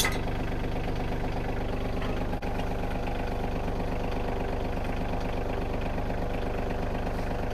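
A tractor engine idles steadily nearby.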